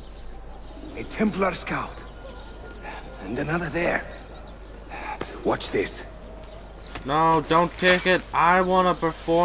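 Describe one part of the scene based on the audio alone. A man speaks calmly and low, close by.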